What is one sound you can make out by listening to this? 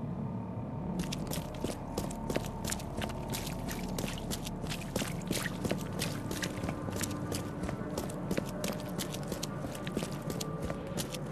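Footsteps tap steadily on wet pavement.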